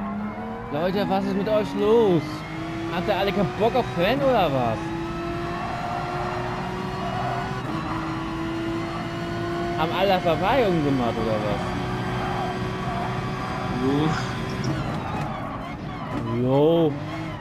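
A racing car engine roars steadily, rising in pitch as it speeds up through the gears.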